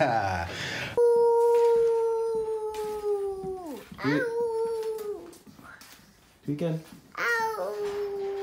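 A small child sings in a high, drawn-out voice close by.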